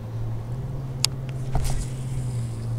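A fishing reel clicks briefly.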